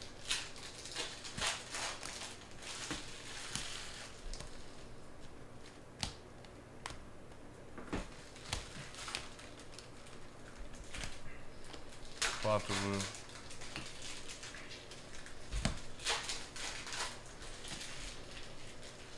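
Trading cards slide and flick against each other as they are shuffled by hand.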